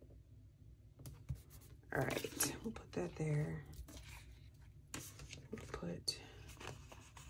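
Sticker sheets rustle and crinkle.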